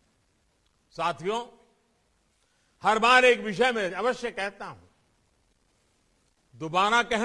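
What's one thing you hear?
An elderly man speaks steadily, heard through an online call.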